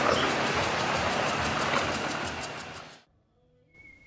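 A boat motor hums across the water.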